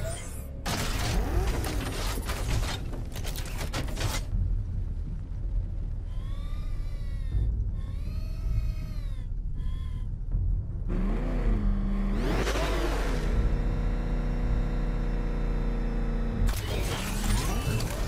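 A powerful car engine roars and revs.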